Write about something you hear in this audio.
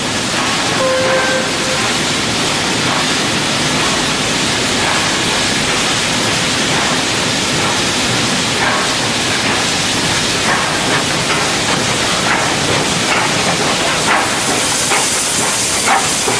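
A steam locomotive chuffs as it slowly approaches and rolls past.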